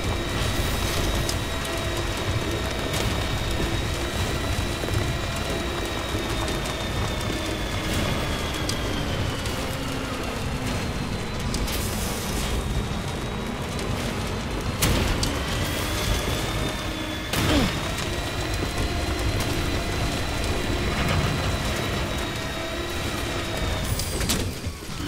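Tyres crunch and bump over rocky ground.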